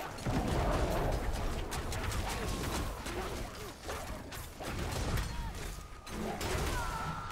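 Game combat effects crash and clatter rapidly.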